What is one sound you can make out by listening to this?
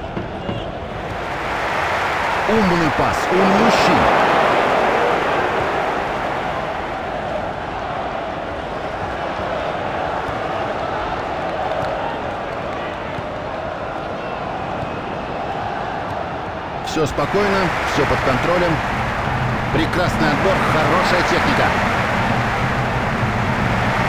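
A large crowd roars and chants steadily in a big open stadium.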